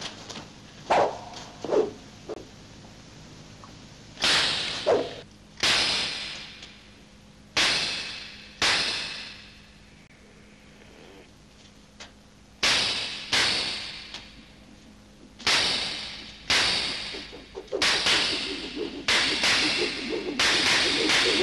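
Sharp whooshing swipes and blows cut through the air, each ringing out and fading.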